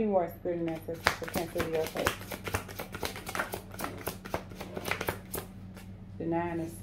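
Cards riffle and slap as they are shuffled.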